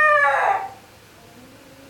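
A chicken squawks loudly.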